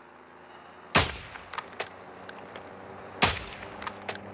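A sniper rifle fires sharp, loud single shots.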